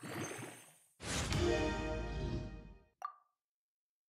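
A bright magical burst rings out with a shimmering chord.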